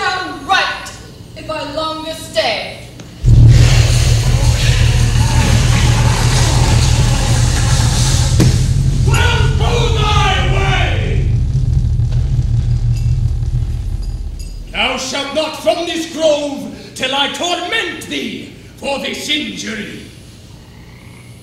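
A woman speaks dramatically from a stage, heard from a distance.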